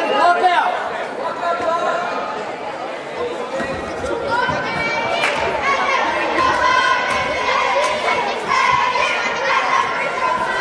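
A crowd of people chatters and calls out in a large echoing gym.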